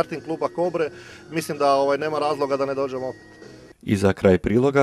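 A man speaks calmly into a microphone outdoors.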